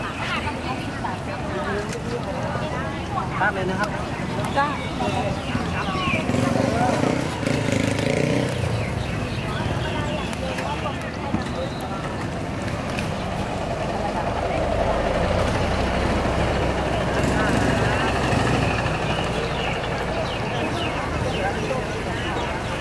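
People chatter in the background of a busy outdoor street.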